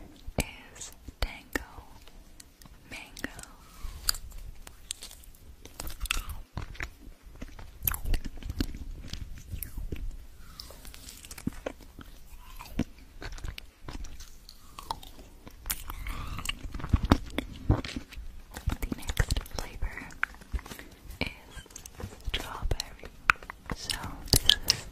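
A young woman whispers softly close to a microphone.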